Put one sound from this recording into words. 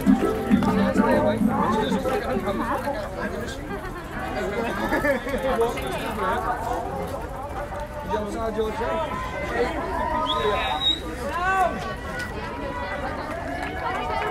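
A large crowd of men and women chatter and call out all around, outdoors.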